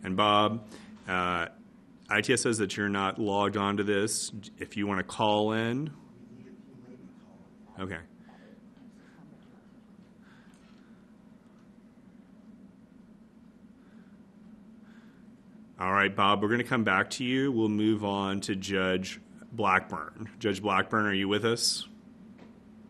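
A man speaks calmly into a microphone, reading out in short bursts with pauses.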